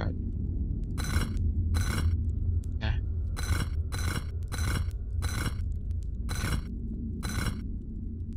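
A heavy stone block scrapes in short bursts.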